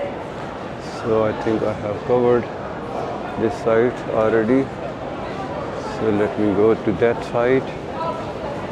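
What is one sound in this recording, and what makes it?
A man speaks up close with animation.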